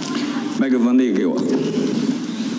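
A man speaks through a microphone in an echoing hall.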